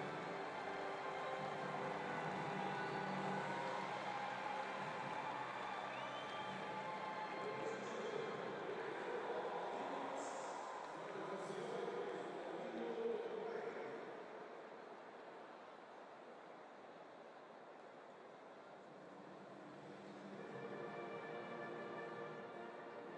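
A large stadium crowd murmurs and cheers in a wide open space.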